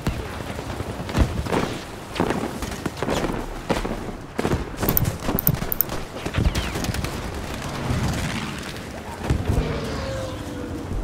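Gunfire and explosions crack and boom in a battle.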